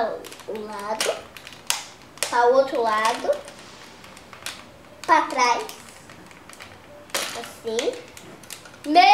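Plastic toys click and knock together.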